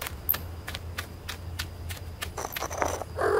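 Light footsteps patter steadily.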